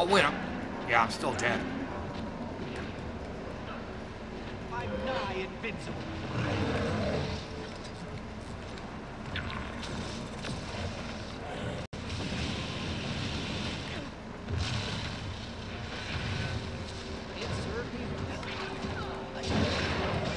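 Game combat effects whoosh and clash.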